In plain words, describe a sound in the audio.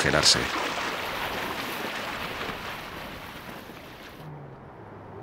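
A vehicle splashes through shallow icy water.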